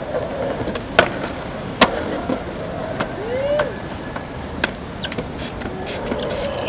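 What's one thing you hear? A skateboard clacks against the ground.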